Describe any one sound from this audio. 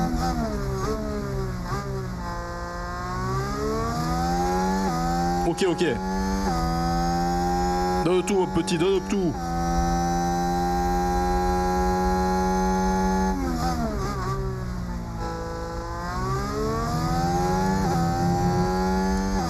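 A racing car engine whines at high revs, rising and falling as the gears shift.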